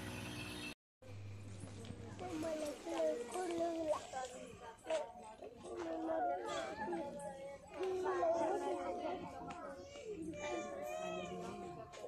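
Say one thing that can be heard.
Several women wail and cry out.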